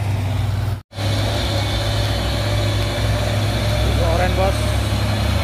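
A second truck's engine rumbles as it approaches.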